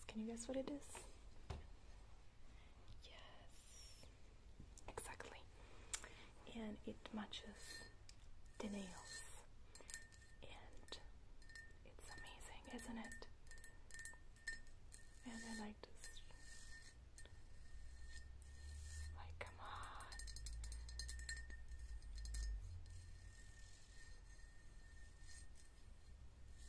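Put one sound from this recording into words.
Long fingernails tap and scratch on a ribbed vase.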